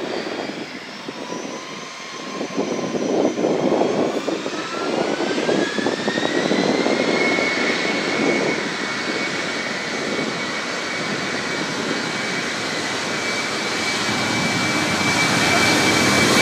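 Jet engines roar and whine, rising steadily in pitch as an airliner speeds up and draws closer.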